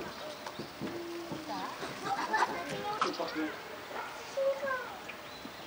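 Monkeys chirp and squeal nearby, with many short calls.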